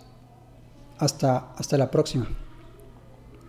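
A man speaks calmly and briefly, close by.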